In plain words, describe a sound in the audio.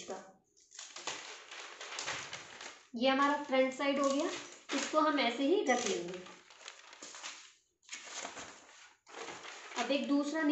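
Newspaper rustles and crinkles as it is folded.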